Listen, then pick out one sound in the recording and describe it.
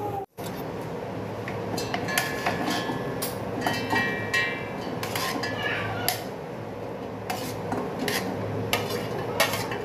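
A spoon clinks against a metal jar.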